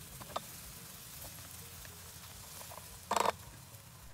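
A wooden spoon scrapes and stirs food in a frying pan.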